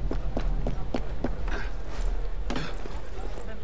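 Footsteps clatter quickly across roof tiles.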